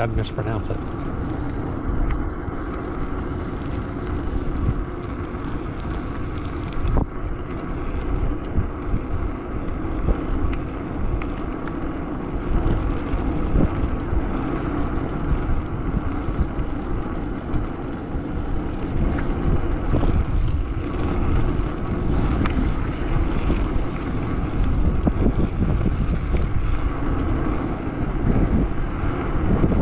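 Wheels roll steadily over rough pavement.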